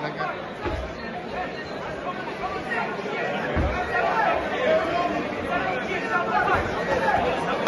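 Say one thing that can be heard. A crowd chatters and shouts in a large hall.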